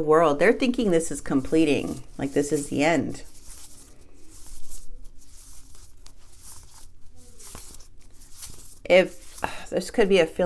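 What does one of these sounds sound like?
Cards rustle and slide in hands.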